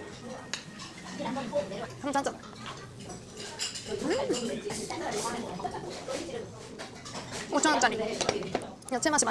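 A young woman talks with animation close to a clip-on microphone.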